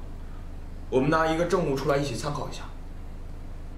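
A young man speaks calmly nearby.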